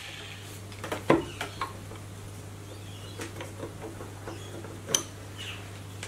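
Metal parts clank as a grinder is set down on a vise.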